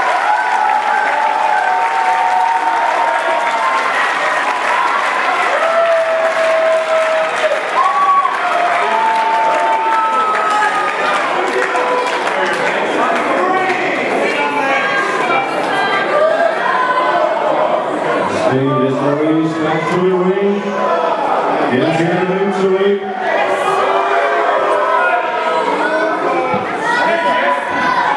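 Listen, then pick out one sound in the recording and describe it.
A crowd chants and cheers loudly in a large echoing hall.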